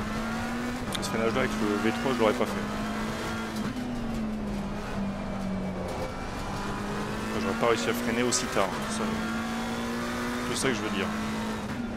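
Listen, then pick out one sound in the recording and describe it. Tyres screech through corners.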